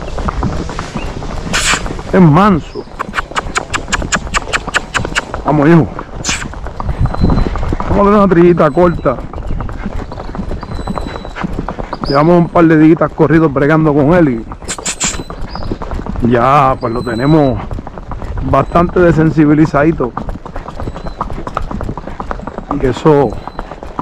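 A horse's hooves clop steadily on pavement.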